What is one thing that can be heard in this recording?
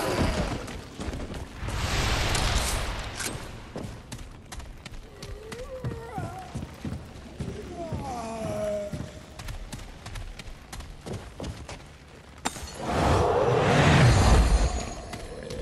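Footsteps tread softly on stairs and wooden floorboards.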